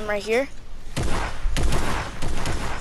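A gun fires in rapid shots.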